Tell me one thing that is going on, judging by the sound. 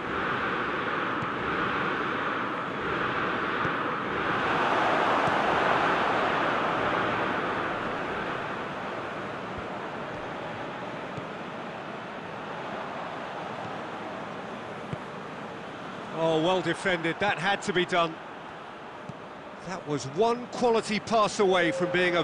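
A large crowd roars and cheers steadily, swelling louder for a few seconds.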